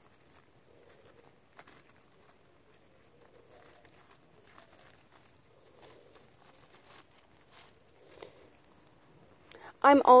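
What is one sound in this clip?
Paper towel crinkles and rustles softly as it is folded by hand.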